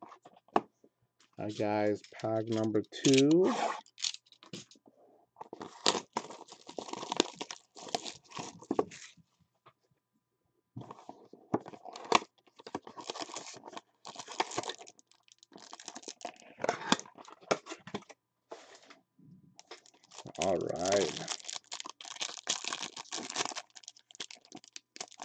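Plastic wrappers crinkle and rustle as packs of cards are handled and torn open.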